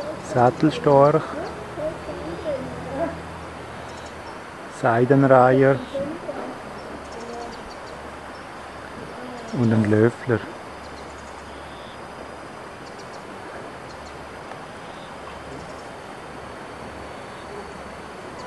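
Birds splash softly as they wade and feed in shallow water.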